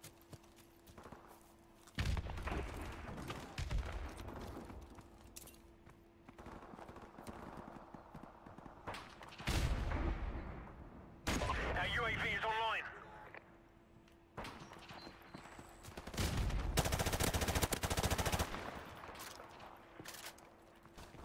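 Footsteps crunch over rubble and grass.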